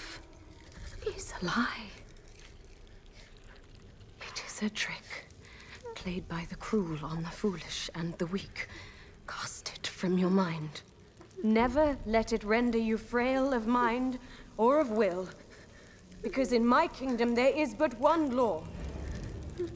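A woman speaks in a low, cold voice close by.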